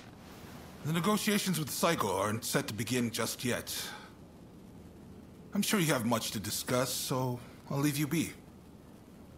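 A middle-aged man speaks calmly and firmly, close by.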